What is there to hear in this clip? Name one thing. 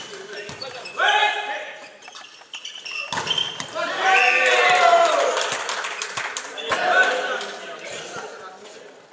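Young men shout and call out in an echoing hall.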